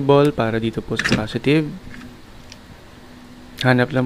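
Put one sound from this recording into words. A metal clamp snaps onto a battery terminal.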